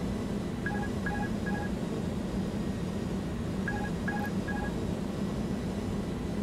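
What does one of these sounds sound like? A jet engine drones steadily.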